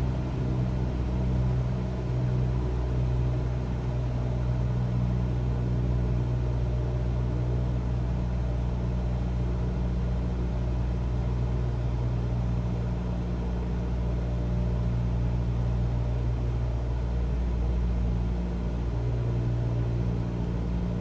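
A small propeller plane's engine drones steadily from inside the cockpit.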